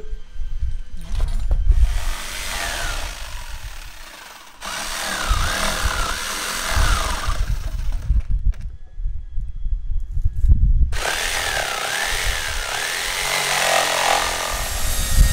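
A power sander whirs and grinds in bursts.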